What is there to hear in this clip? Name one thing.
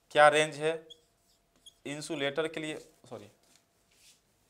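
A young man speaks clearly and steadily, close by.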